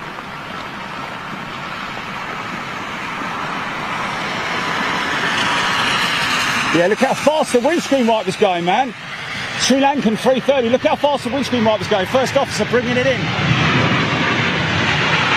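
A jet airliner's engines roar loudly.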